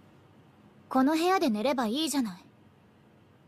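A young man asks a question in a clear, close voice.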